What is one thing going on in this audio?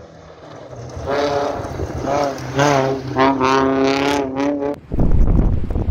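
A rally car engine revs hard as the car speeds past.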